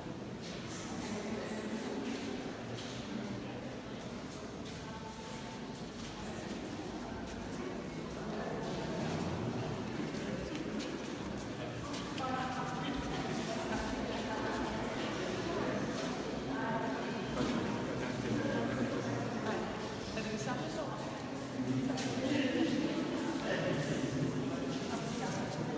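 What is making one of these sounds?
Footsteps shuffle on a hard floor.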